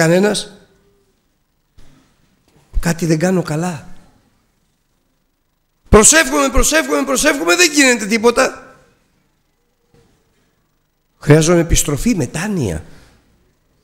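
An older man speaks emphatically into a microphone in short bursts with pauses.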